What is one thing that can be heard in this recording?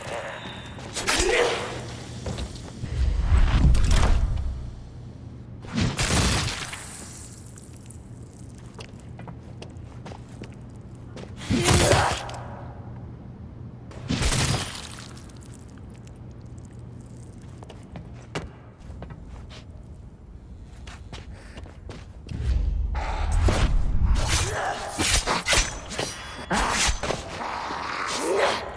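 A heavy blade chops into flesh with wet thuds.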